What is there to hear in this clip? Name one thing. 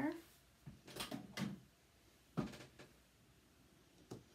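Objects knock and clatter on a table.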